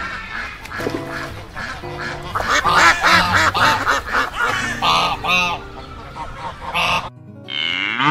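Ducks quack busily on the water.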